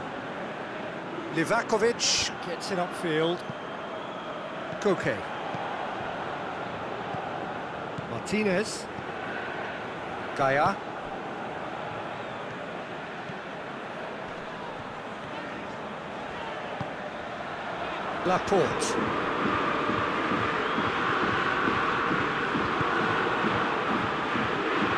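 A large crowd murmurs and cheers steadily in a stadium, swelling louder near the end.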